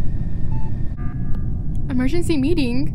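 A loud electronic alarm blares once.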